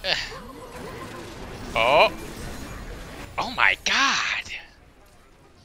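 Magic blasts and explosions crash in a fierce fight.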